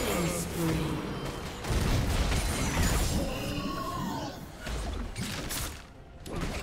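Game spell effects burst and clash in a fast fight.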